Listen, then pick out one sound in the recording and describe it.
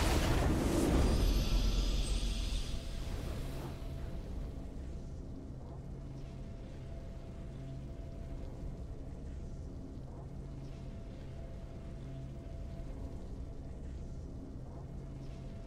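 A triumphant video game fanfare rings out loudly, then fades into soft music.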